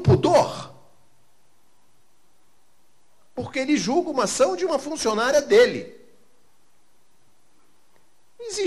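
An older man speaks with animation into a microphone, heard through a loudspeaker, pausing between phrases.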